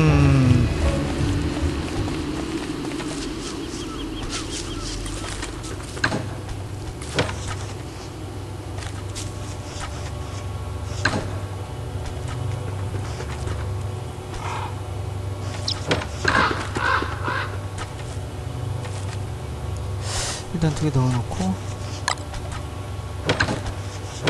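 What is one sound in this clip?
Footsteps patter steadily across dry ground.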